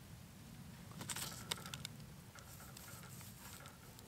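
Butcher paper crinkles as a piece of meat is set down on it.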